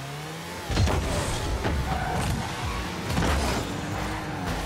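A car boost roars in short bursts.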